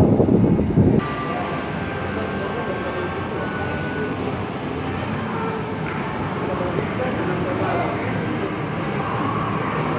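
Faint voices murmur in a large echoing hall.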